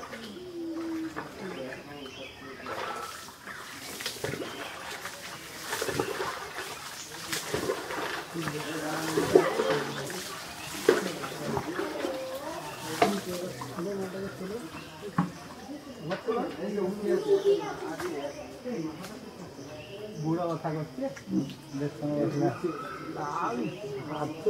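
A peacock's tail feathers rustle and rattle as it shakes them.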